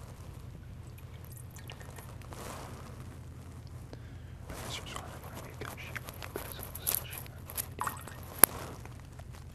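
Metal and glass vessels clink softly on a table.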